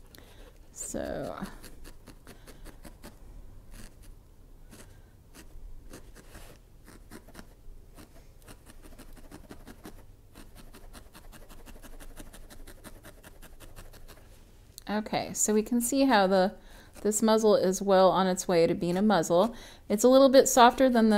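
A felting needle pokes softly and rapidly into wool on a foam pad.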